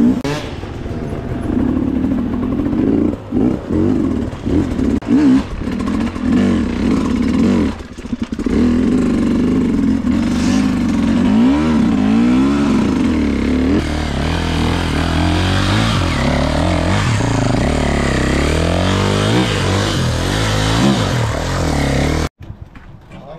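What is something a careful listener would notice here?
A dirt bike engine revs hard and roars up close.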